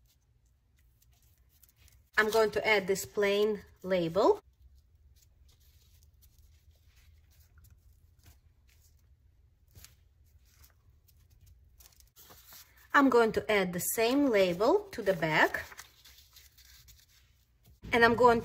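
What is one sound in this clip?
Paper rustles and crinkles softly as it is folded and pressed flat.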